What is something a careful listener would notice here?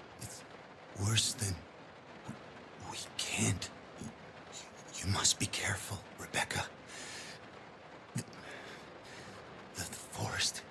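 A wounded man speaks weakly and slowly.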